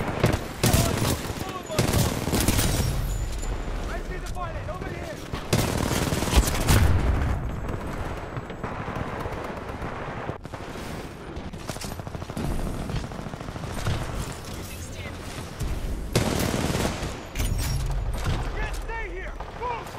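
Rifle gunfire rattles in quick bursts.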